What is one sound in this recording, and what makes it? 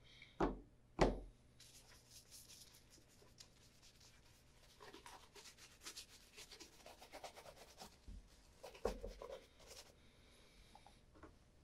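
A brush scrubs lightly against a leather shoe.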